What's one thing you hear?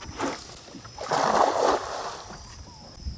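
A cast net splashes down onto the water.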